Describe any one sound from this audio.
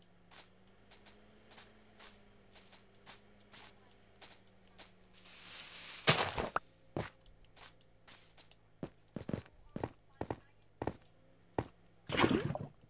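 Footsteps patter steadily over hard ground.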